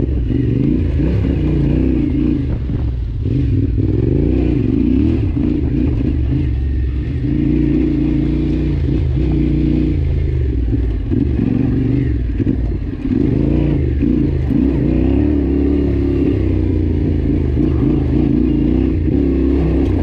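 A motorcycle engine rumbles steadily, rising and falling with the throttle.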